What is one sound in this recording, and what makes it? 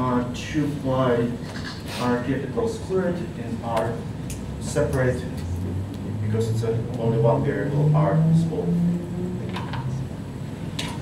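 A man speaks calmly into a clip-on microphone.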